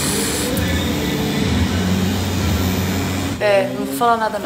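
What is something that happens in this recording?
A tattoo machine buzzes steadily up close.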